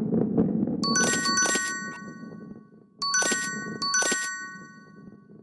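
A slot machine chimes with bright ringing tones.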